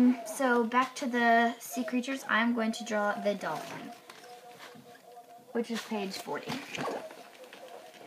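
A young girl speaks calmly close to a microphone.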